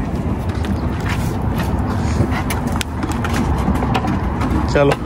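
Metal tools clink and tap under a vehicle.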